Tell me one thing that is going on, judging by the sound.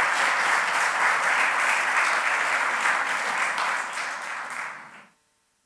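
An audience applauds in a large echoing hall, then the applause fades.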